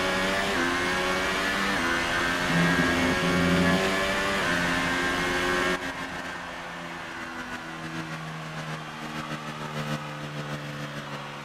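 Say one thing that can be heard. A racing car engine screams at high revs, its pitch stepping up through the gears before dropping to a quieter, lower drone.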